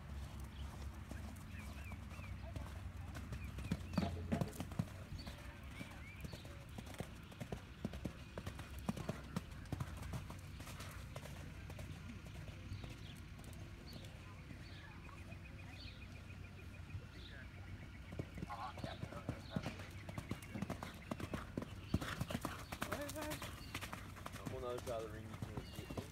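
Horse hooves thud on soft sand at a canter.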